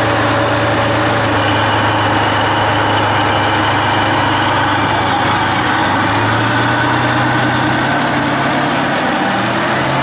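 A tank engine roars loudly and steadily as the tank churns through deep mud.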